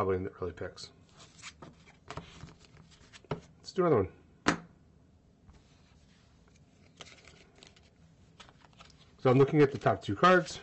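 Playing cards slide and tap softly on a table.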